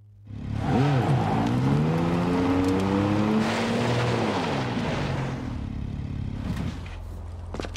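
A motorbike engine revs and roars, rising and falling in pitch.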